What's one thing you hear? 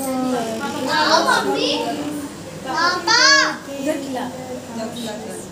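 Young girls sing and cheer loudly nearby.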